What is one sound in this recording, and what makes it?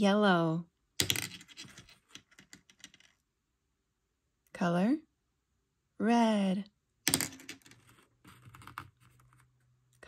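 Small hard candies drop into a plastic bowl and rattle around.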